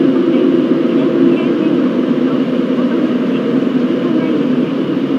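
A train rumbles steadily along the tracks through a tunnel.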